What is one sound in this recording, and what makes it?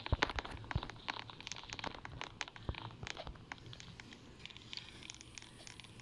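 A phone keyboard clicks softly with each tap while typing.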